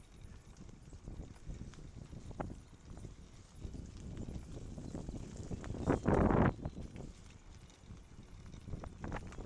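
Bicycle tyres crunch over a gravel path.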